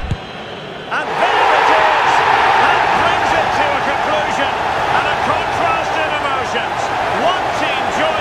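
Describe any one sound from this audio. A stadium crowd erupts in a loud roar.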